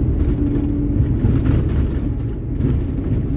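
An oncoming van whooshes past.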